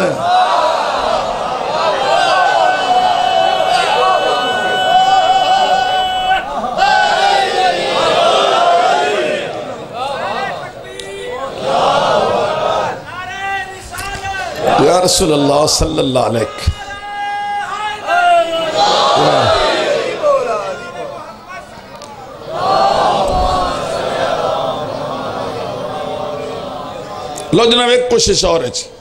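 A middle-aged man speaks with emotion into a microphone, heard through a loudspeaker in an echoing hall.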